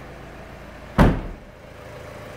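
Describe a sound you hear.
A car tailgate slams shut with a heavy thud.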